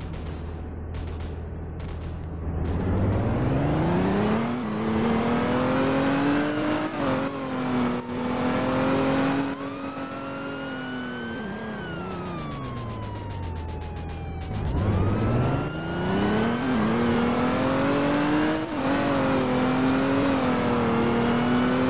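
A truck engine idles, then revs up and drops back as the truck speeds up and slows down twice.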